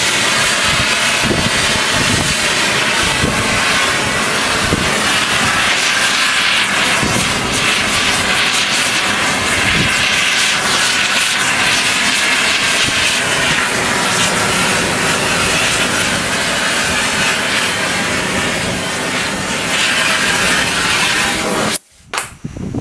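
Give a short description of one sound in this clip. A gas torch roars loudly and steadily.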